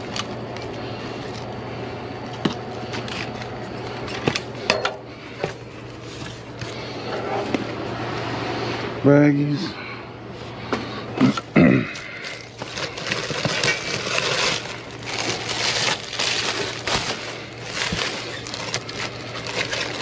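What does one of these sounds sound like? A metal grabber pole clicks and knocks against debris.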